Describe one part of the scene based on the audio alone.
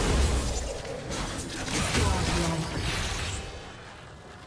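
Magic spell effects whoosh and crackle in a fight.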